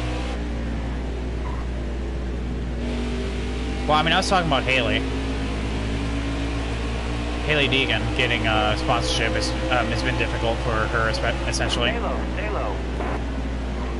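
Other race cars roar past close by.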